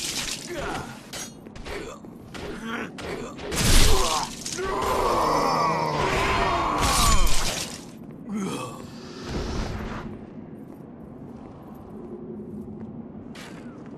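Armoured footsteps clank.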